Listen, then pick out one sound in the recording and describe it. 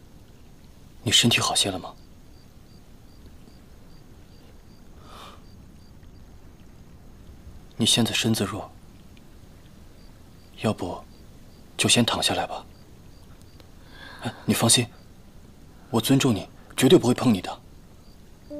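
A young man speaks softly and calmly, close by.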